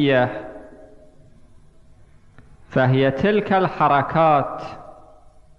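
A man speaks slowly and solemnly into a microphone in an echoing hall.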